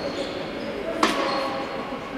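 A futsal ball is kicked on the court.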